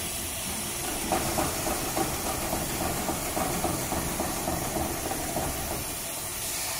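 A sewing machine stitches through thick fabric.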